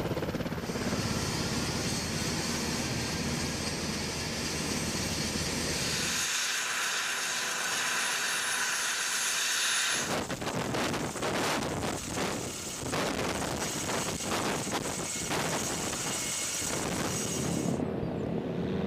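A helicopter's rotor thumps and whines loudly.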